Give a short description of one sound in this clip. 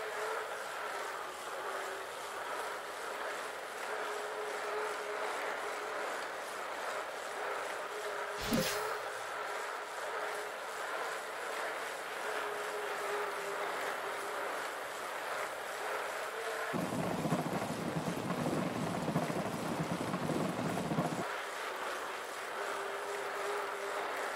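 Bicycle tyres hum steadily on a smooth road.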